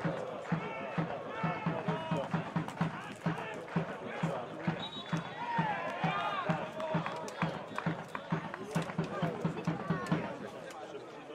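A crowd of spectators chants and cheers nearby.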